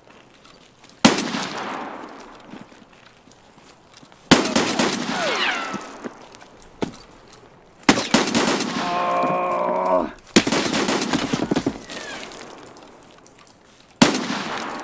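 A pistol fires loud shots that ring out and echo.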